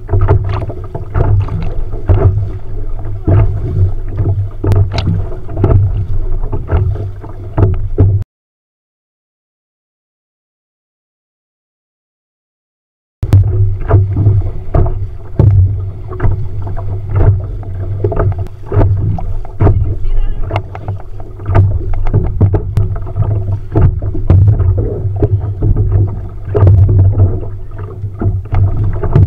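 Choppy waves slap against a small boat.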